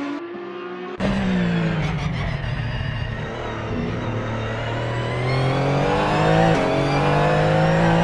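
A racing car engine roars up close from inside the car, rising and falling in pitch.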